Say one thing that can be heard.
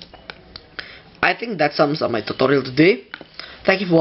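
A button on a small device clicks as it is pressed.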